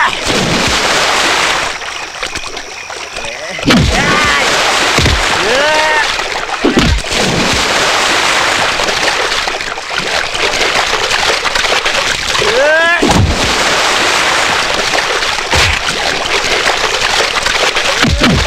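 Water splashes and churns loudly as a man thrashes about.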